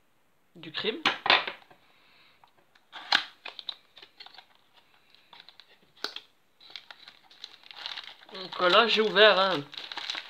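Cardboard rustles and scrapes as a small box is opened by hand.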